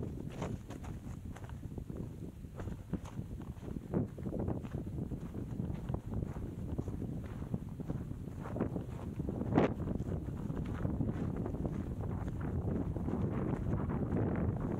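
Bicycle tyres crunch and rattle over loose dirt and stones.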